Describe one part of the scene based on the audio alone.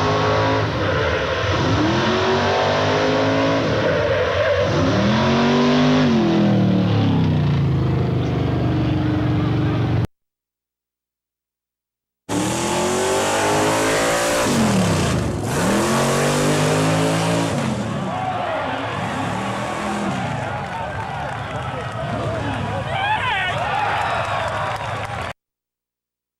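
A truck engine roars and revs up and down loudly.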